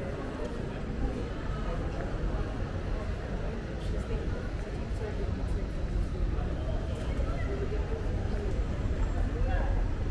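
Voices of passers-by murmur outdoors in a quiet street.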